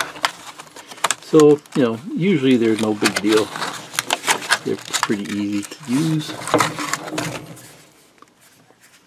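Plastic packaging crinkles and rustles in hands.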